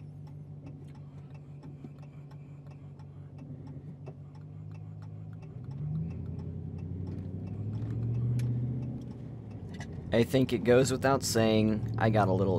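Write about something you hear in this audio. A car engine hums steadily while driving, rising a little in pitch as it speeds up.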